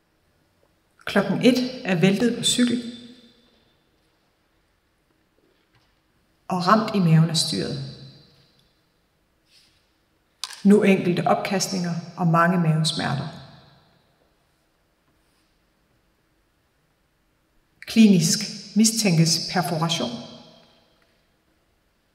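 A woman speaks expressively in bursts, with pauses between them, in an echoing hall.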